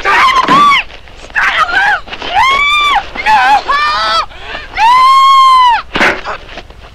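A woman screams loudly and shrieks in terror.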